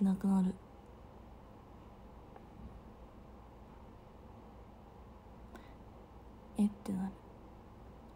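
A young woman speaks briefly and softly, close to the microphone.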